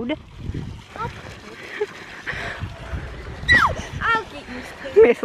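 Young girls talk and squeal excitedly close by.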